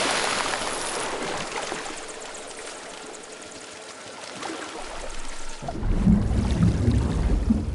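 Water rushes and bubbles as a swimmer moves underwater.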